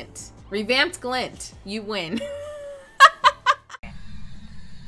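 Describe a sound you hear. A young woman talks and laughs with animation into a microphone.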